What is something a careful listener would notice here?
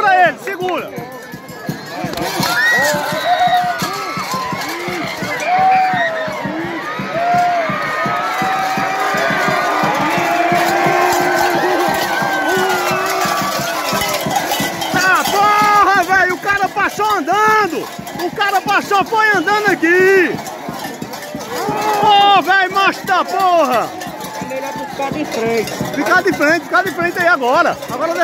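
A large outdoor crowd shouts and cheers loudly nearby.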